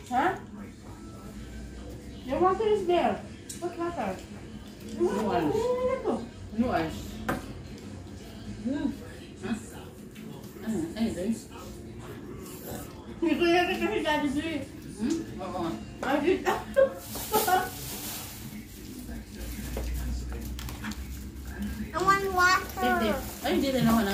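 Women talk and chat casually close by.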